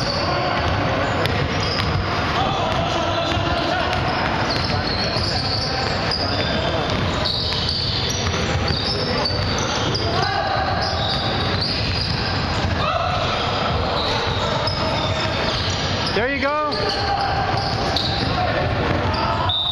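Sneakers squeak sharply on a hard floor in a large echoing gym.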